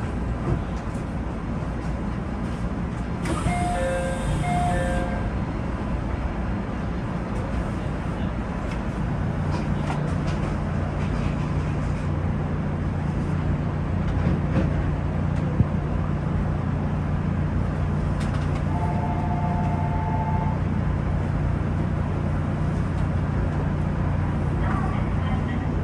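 A train idles with a steady low hum that grows louder.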